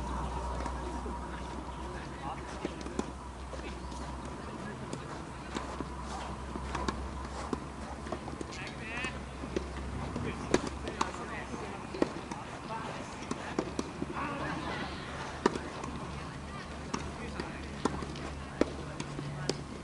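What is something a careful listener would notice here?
Tennis balls are struck with rackets and bounce on a hard court, heard from a distance.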